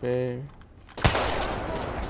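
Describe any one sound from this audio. A rifle fires a single loud, sharp shot with a ringing echo.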